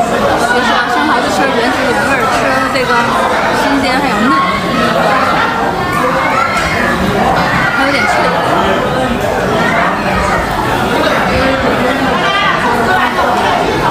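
A young woman talks cheerfully and close by.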